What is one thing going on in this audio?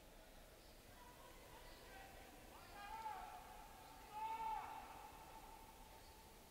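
Football players shout faintly to each other across a large open stadium.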